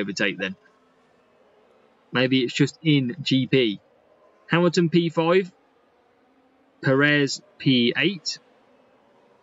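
A young man talks calmly and closely into a microphone, in short bursts.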